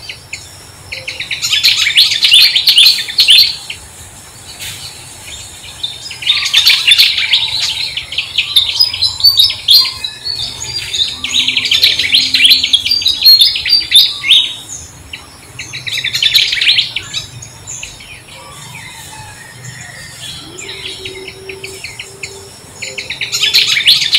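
A baby monkey squeals and cries shrilly in repeated bursts, close by.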